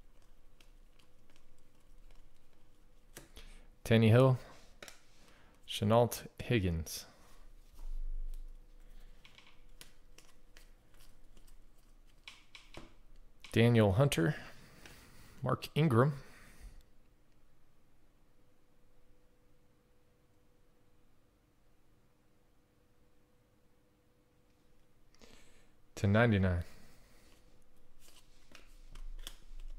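Trading cards rustle and flick between fingers.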